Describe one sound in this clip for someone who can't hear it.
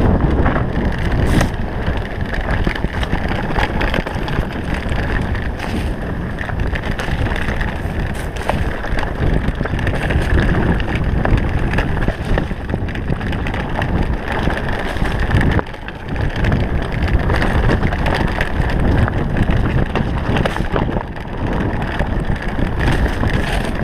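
Bicycle tyres roll and crunch over a rough dirt trail.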